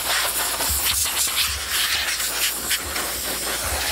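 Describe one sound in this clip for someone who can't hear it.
Compressed air hisses loudly from an air blower.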